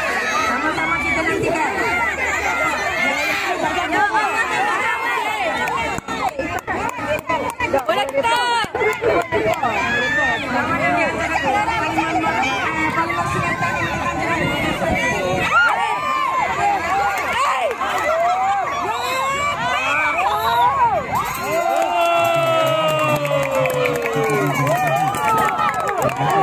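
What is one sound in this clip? A crowd of children and adults shout and cheer outdoors.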